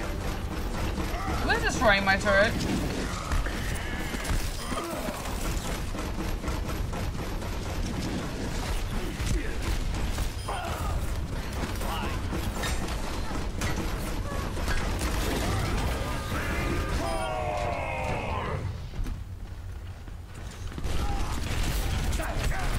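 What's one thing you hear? Game gunfire rattles in rapid bursts.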